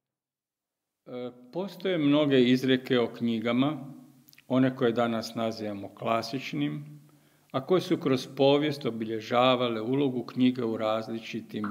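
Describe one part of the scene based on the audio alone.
An elderly man speaks calmly into a microphone, reading out.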